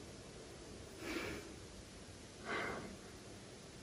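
A man coughs into his elbow.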